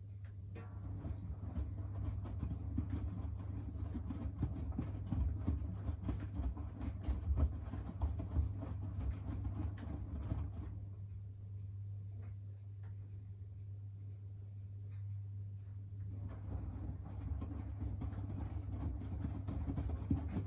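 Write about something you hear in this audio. Wet laundry sloshes and thumps inside a turning washing machine drum.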